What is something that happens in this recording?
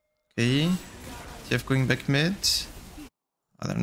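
Spell effects whoosh and crackle during a fight.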